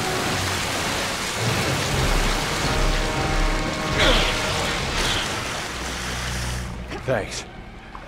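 Water splashes and sloshes as a man swims.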